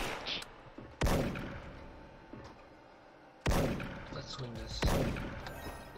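A rifle fires loud single shots that echo briefly.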